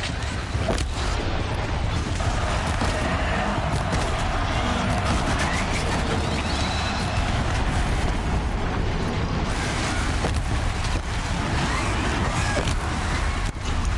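Explosions boom and crackle in bursts.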